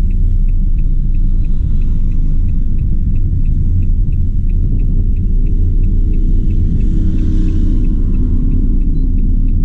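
A van engine rumbles steadily from inside the cab.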